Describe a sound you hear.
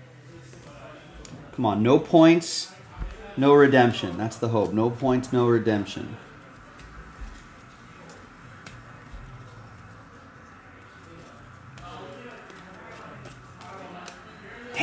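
Trading cards rustle and flick as they are shuffled by hand.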